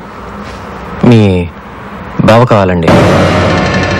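A second man answers in a firm, low voice.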